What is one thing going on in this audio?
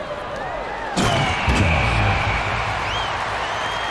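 A crowd cheers loudly after a basket.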